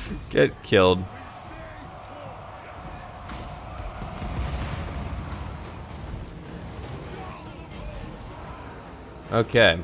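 A battle rumbles with distant clashing and blasts.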